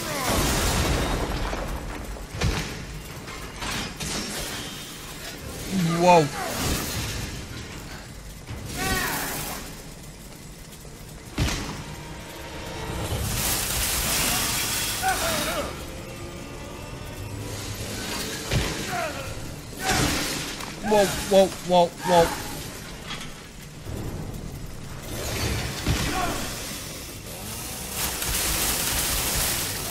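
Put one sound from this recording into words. A chainsaw engine roars and revs.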